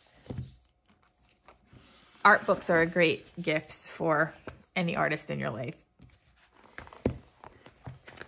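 Glossy book covers slide and tap against each other.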